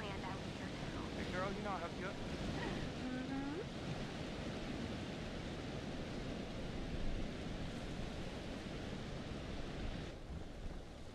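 Wind howls steadily outdoors and then dies down.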